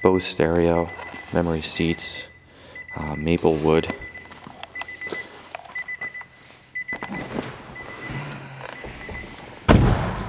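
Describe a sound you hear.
A car's warning chime beeps repeatedly.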